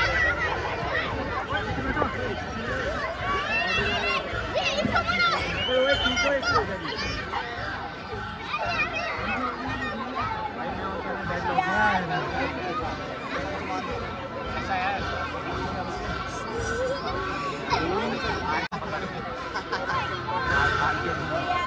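A large outdoor crowd of men and women chatters and calls out close by.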